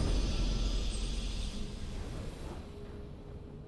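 A triumphant game fanfare swells and slowly fades away.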